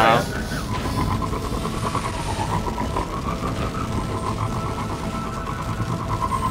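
A jet-powered hover bike roars steadily as it speeds along.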